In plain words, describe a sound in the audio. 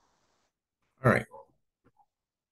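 A man coughs into his hand close by.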